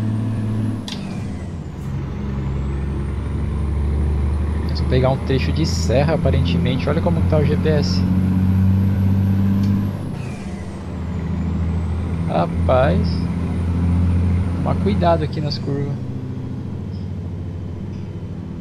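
A truck engine drones steadily, rising and falling as it pulls along the road.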